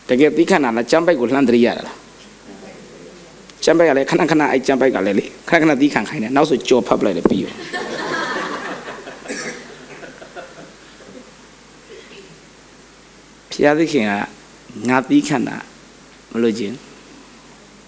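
A man speaks with animation through a microphone in a large echoing hall.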